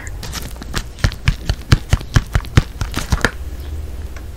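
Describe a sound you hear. Fingernails tap sharply and rapidly on a paper box close up.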